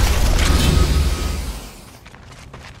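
A magical burst crackles and whooshes.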